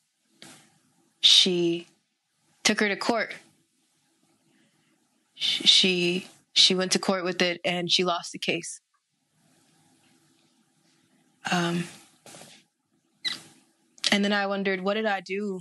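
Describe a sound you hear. A young woman speaks calmly and close to a microphone, with pauses.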